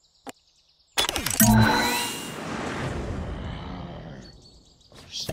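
A loud game jingle plays with a whoosh as a level begins.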